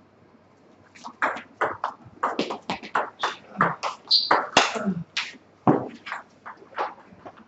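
A ping-pong ball clicks quickly back and forth off paddles and a table in an echoing hall.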